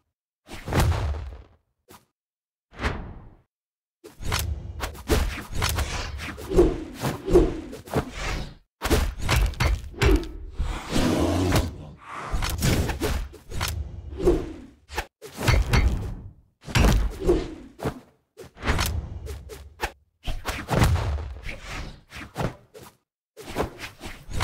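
Cartoonish hits and whooshes sound in quick bursts during a fight.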